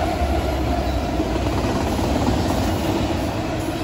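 Diesel freight locomotives rumble past under power.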